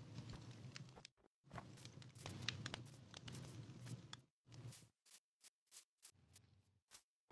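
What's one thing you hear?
Footsteps crunch on snow and grass.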